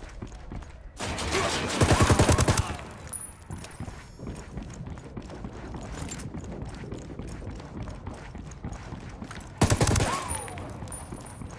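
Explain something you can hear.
A rifle fires loud rapid bursts at close range.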